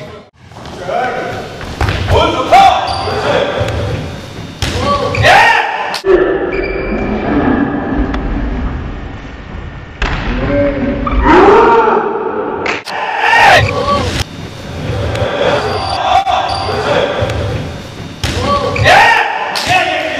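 Young men shout and call out to each other in a large echoing hall.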